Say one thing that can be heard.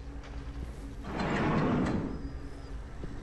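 A heavy door swings open.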